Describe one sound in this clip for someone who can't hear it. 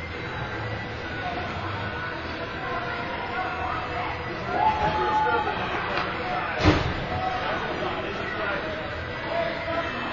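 Skate blades scrape across the ice.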